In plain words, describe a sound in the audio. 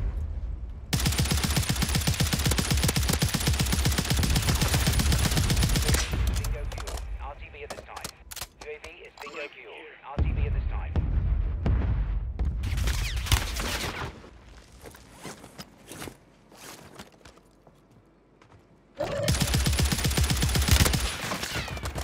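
A rifle fires in rapid bursts of gunshots.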